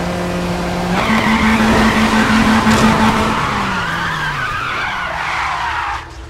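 Car tyres screech in a skid.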